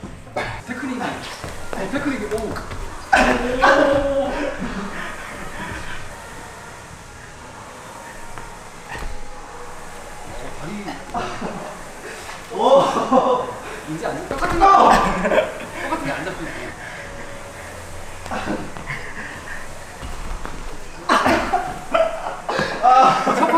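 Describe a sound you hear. Young men shout and laugh with animation in an echoing room.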